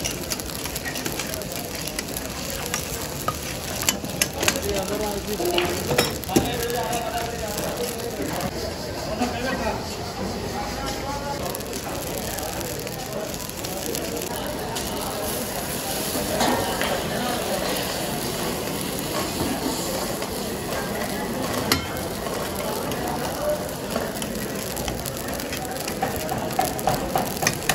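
Meat sizzles and bubbles in a hot wok.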